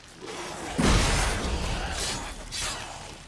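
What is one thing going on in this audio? A burst of flame roars and crackles.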